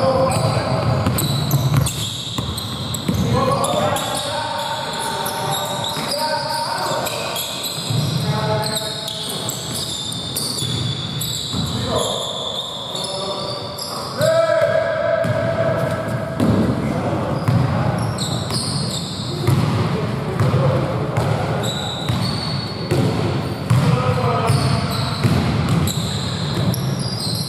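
Men shout and call out to each other across an echoing hall.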